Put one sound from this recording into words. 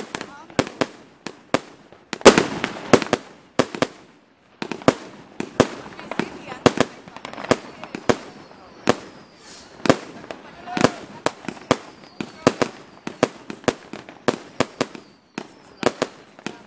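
Firework rockets whistle as they shoot up.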